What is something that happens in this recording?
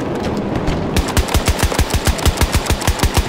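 A rifle fires in rapid bursts, close by.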